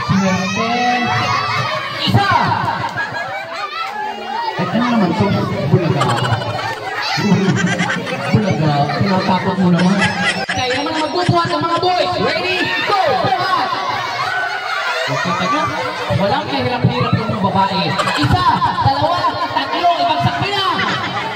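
A crowd of children shouts and laughs.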